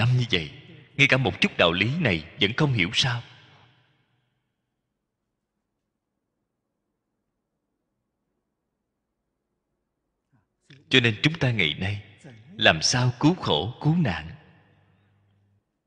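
An elderly man speaks calmly and slowly into a close microphone, pausing between phrases.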